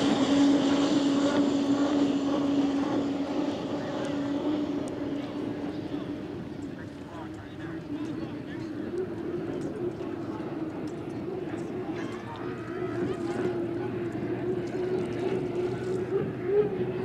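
Spray hisses off the water behind a speeding boat.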